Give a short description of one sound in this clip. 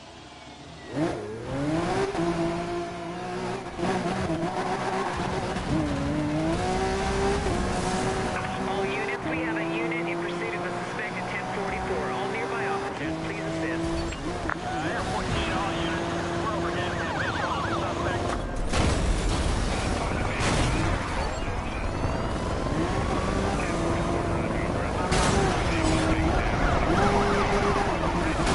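A sports car engine roars and revs at high speed.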